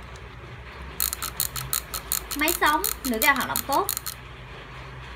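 A fishing reel clicks rapidly as its spool is turned by hand.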